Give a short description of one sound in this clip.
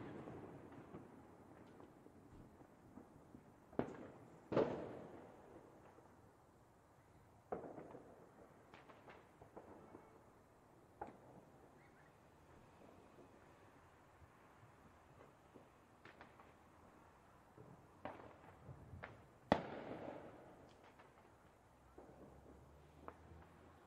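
Fireworks bang and crackle outdoors.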